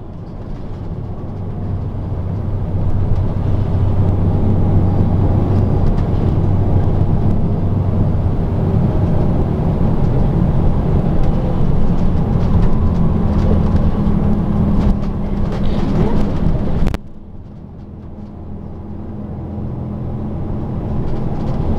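A vehicle's engine hums steadily from inside.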